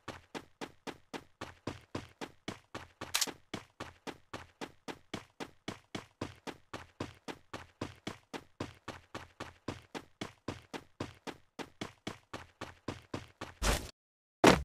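Quick, steady footsteps run over the ground.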